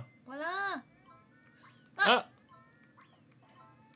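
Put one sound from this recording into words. Bright game chimes ring in quick succession.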